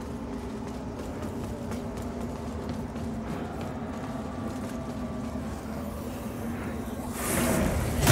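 Footsteps tread on stone steps.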